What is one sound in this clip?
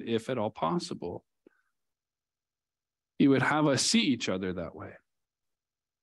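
A man speaks calmly into a headset microphone, with pauses.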